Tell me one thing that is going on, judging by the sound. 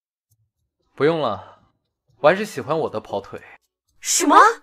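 A young man speaks nearby in a calm, firm voice.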